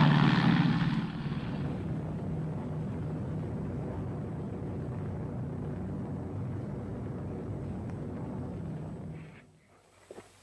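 Propeller engines drone steadily in flight.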